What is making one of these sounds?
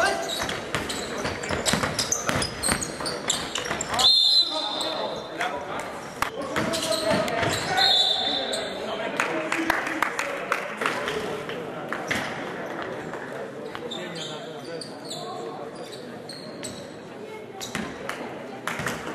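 Spectators murmur and call out in the background.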